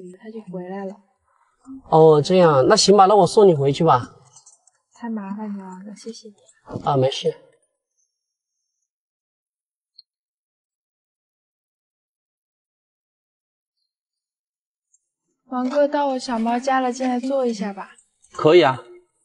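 A young woman talks nearby in a calm, chatty way.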